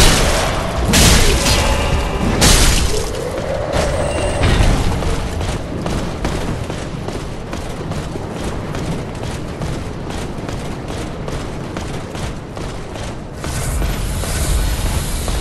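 A burst of fire whooshes.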